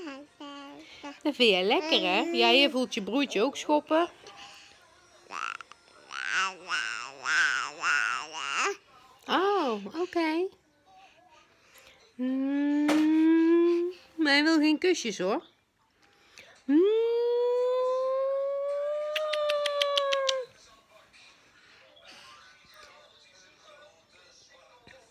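A baby babbles and coos.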